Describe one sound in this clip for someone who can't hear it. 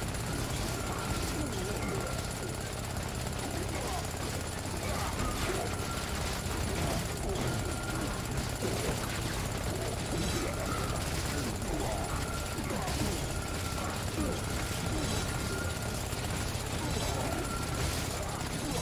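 Weapons clash and creatures grunt in a game fight.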